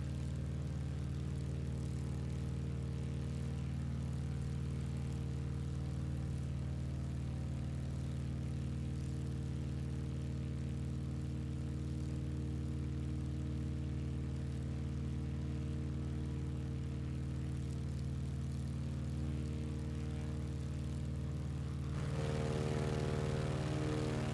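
A small propeller aircraft engine drones steadily.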